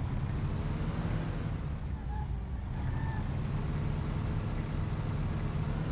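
An old car engine rumbles steadily as the car drives along.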